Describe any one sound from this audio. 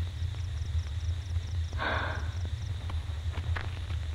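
A young woman speaks quietly close by.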